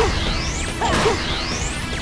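An explosion bursts with a fiery blast.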